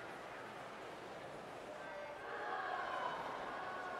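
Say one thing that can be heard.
Swimmers dive and splash into water.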